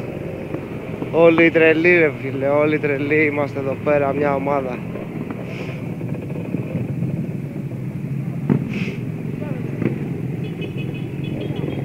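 A scooter engine runs steadily close by.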